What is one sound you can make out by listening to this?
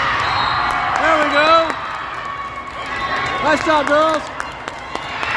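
Young girls shout and cheer.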